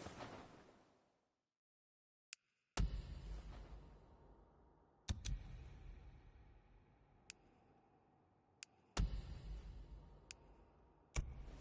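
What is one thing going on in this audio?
Game menu sounds swoosh and click as pages change.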